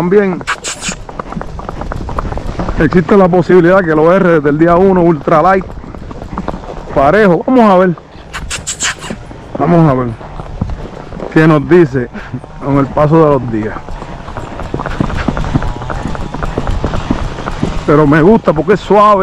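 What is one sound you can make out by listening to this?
Hooves clop steadily on asphalt.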